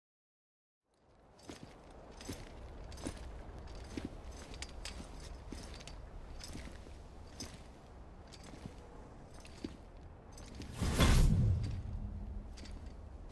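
Heavy gear rattles and clicks.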